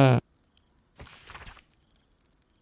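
A sheet of paper unfolds with a dry rustle.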